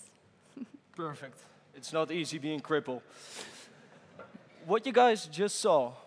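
A man speaks over a loudspeaker in a large echoing hall.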